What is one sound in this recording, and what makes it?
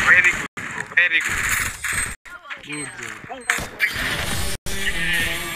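Gunshots ring out in quick bursts.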